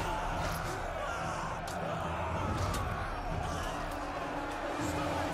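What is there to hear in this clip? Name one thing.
A large crowd of soldiers shouts and clamours in battle.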